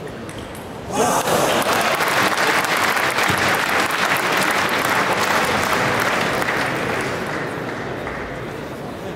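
A large crowd cheers and applauds loudly in a big hall, then slowly dies down.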